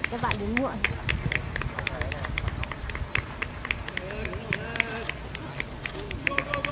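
Footsteps patter quickly on grass as several young men jog.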